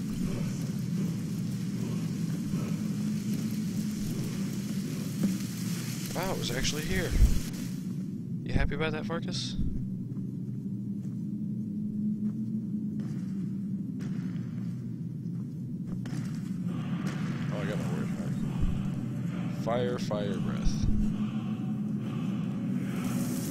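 A small flame hisses and crackles softly.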